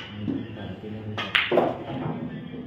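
A cue strikes a ball with a sharp click.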